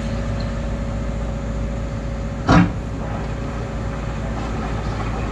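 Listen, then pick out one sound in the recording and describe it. An excavator engine hums steadily from inside a closed cab.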